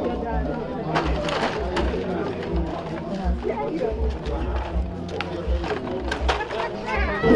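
Glass bottles clink in a crate.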